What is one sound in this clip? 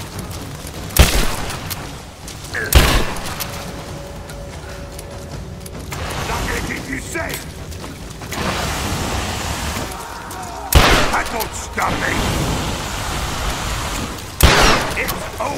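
A shotgun fires loudly in sharp single blasts.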